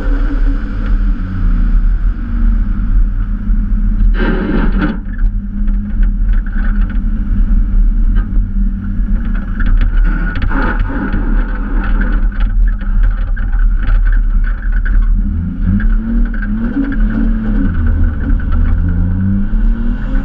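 Tyres crunch and rumble over snow and rough ground.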